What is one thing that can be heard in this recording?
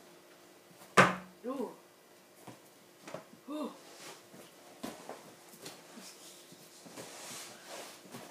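Bare feet thump on an air mattress.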